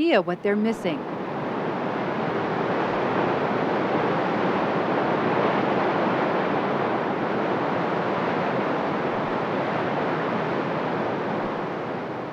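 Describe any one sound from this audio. A waterfall roars steadily, rushing water crashing onto rocks.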